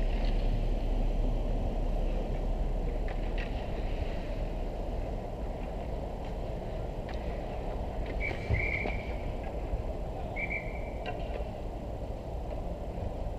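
Ice hockey skates scrape and cut across ice.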